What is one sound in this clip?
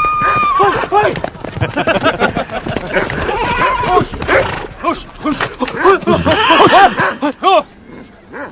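A group of men laugh loudly outdoors.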